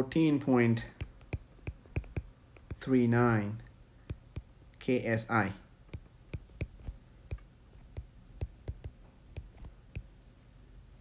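A stylus taps and scratches on a glass tablet.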